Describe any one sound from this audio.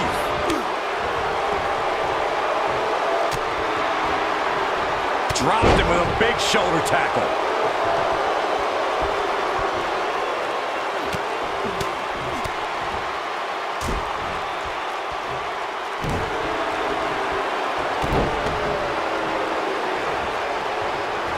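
A crowd cheers and roars steadily in a large arena.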